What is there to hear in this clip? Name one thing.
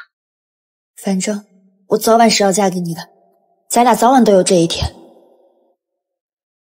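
A young woman speaks softly and gently.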